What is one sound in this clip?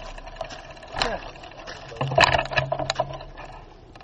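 A bicycle rattles and knocks over bumps.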